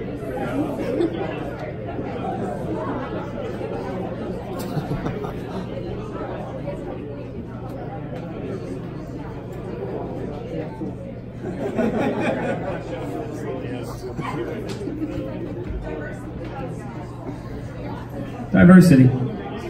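A crowd of people chatter nearby.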